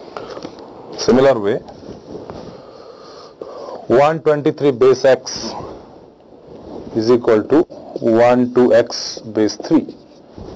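A man lectures calmly, close by.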